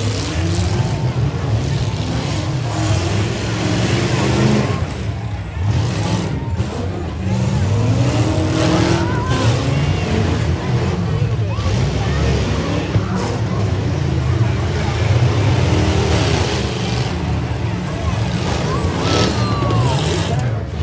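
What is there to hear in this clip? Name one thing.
Car engines roar and rev loudly outdoors.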